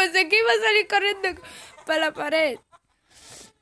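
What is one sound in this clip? A young boy laughs loudly close to a microphone.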